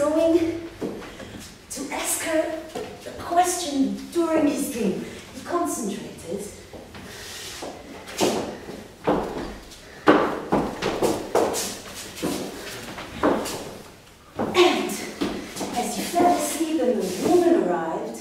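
Footsteps thump on a wooden floor.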